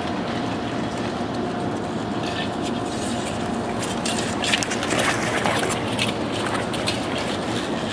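Ice skate blades scrape and hiss across the ice in a large echoing hall.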